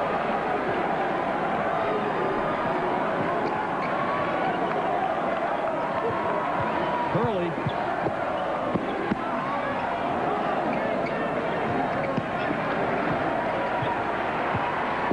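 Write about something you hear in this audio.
A large indoor crowd cheers and roars steadily in an echoing arena.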